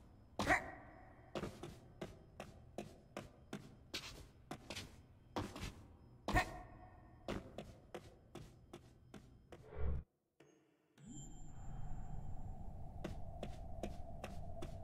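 Light footsteps patter steadily on a hard floor.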